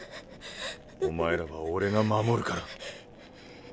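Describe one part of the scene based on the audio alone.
A man speaks gently and protectively.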